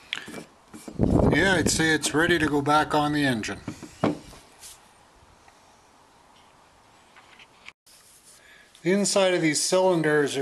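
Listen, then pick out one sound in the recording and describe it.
A man speaks calmly close by, explaining.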